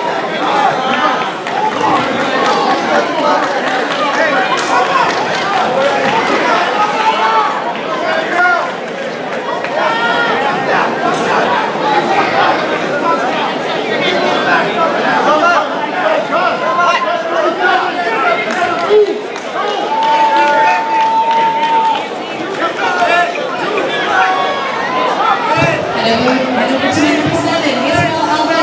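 A crowd of spectators chatters and shouts throughout in a large echoing hall.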